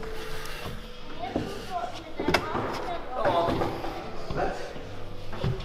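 A young man breathes hard and grunts with effort.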